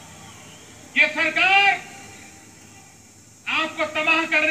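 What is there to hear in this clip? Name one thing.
A man speaks forcefully and loudly into a microphone.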